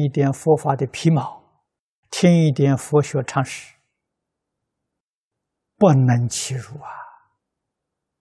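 An elderly man speaks calmly and closely into a microphone, with pauses.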